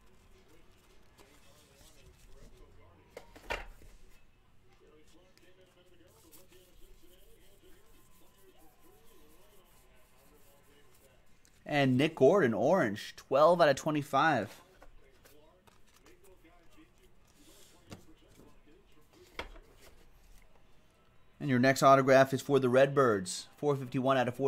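Cards rustle and slide against each other in hands.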